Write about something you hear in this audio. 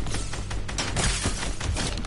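Rapid gunshots crack out.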